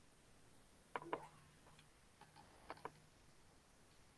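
A middle-aged man speaks briefly and calmly over an online call.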